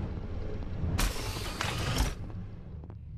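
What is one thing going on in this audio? A sliding door whooshes open.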